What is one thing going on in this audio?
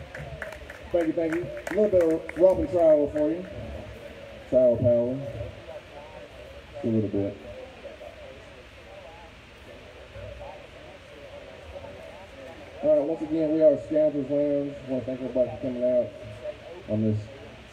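A man speaks casually into a microphone, heard through loudspeakers outdoors.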